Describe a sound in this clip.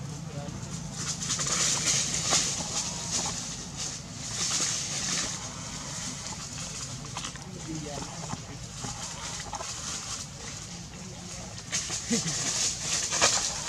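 Dry leaves rustle and crunch as monkeys move over the forest floor.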